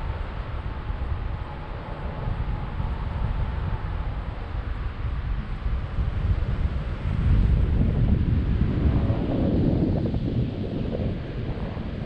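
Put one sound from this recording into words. Wind rushes and buffets a microphone during a tandem paraglider flight, growing stronger partway through.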